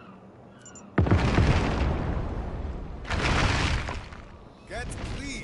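An explosion booms loudly and rumbles.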